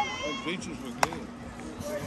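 A bat cracks sharply against a softball.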